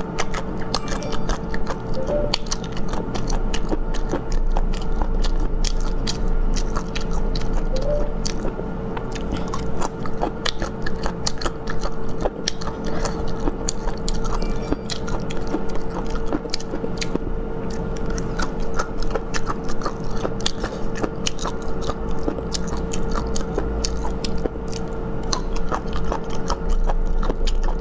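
Chopsticks tap against a plate.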